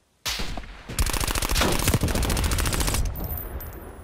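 A rifle fires in rapid automatic bursts, loud and close.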